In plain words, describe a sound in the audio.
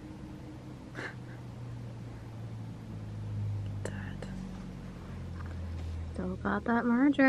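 A cat purrs softly close by.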